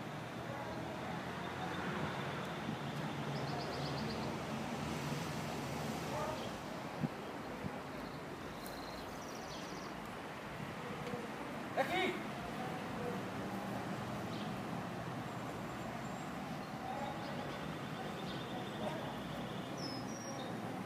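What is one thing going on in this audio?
A man calls out commands to a dog outdoors.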